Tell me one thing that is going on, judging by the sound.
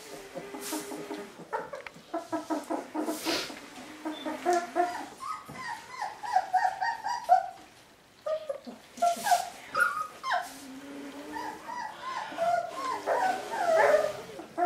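Puppies lap and slurp from a bowl.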